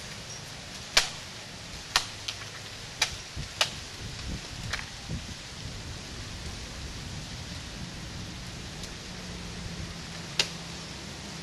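A machete chops into a coconut palm's fronds.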